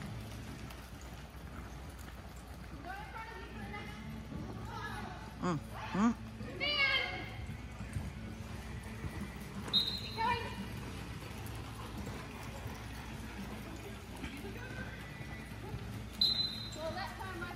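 Horses' hooves thud softly on soft dirt in a large echoing hall.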